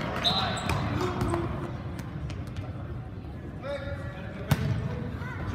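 A ball thuds as it is kicked on a hard floor.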